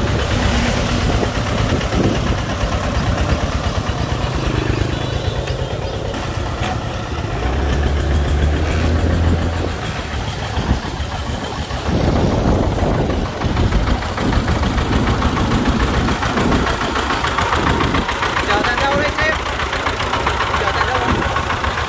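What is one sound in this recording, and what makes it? A small motor vehicle's engine chugs loudly close by.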